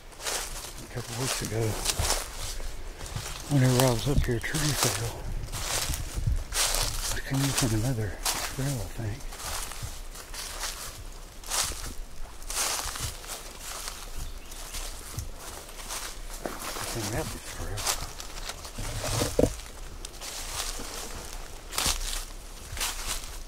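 Leafy branches rustle as they brush past close by.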